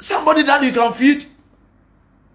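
A man speaks forcefully, close to the microphone.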